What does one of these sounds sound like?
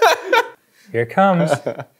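A young man laughs loudly.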